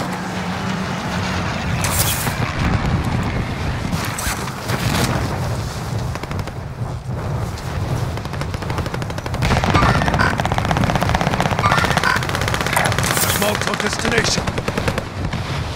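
Wind rushes loudly past a falling parachutist.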